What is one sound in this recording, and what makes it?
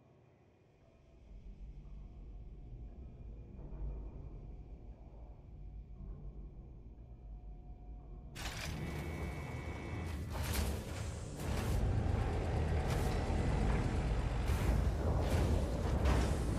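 A spacecraft engine rumbles deeply and grows louder.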